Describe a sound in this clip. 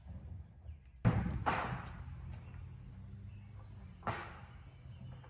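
Hammer blows knock on wood at a distance.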